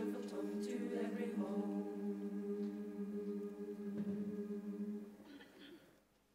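A choir holds a final sung chord, which then fades out.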